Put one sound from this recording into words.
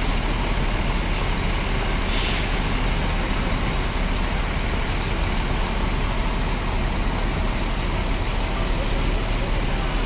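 A bus engine idles with a low, steady rumble nearby.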